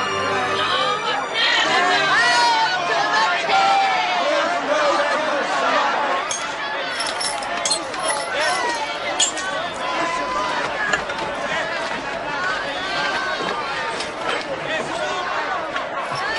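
A large crowd shouts and clamours outdoors.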